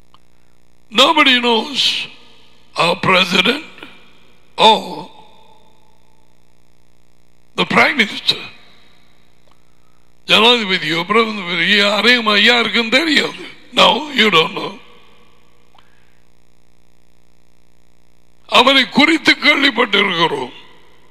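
An elderly man speaks with animation into a close headset microphone, in bursts with pauses.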